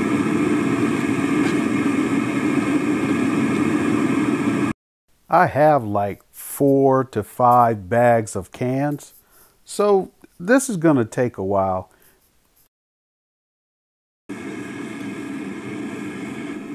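A gas burner roars steadily in a furnace.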